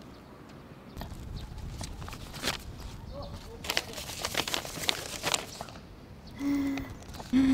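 Paper rustles and crinkles in a man's hands.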